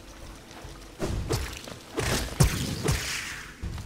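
Sharp slashing and crackling bursts ring out.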